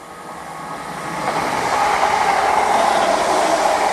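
Train wheels rattle over rail joints.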